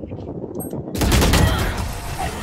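A rifle fires a short burst of loud shots.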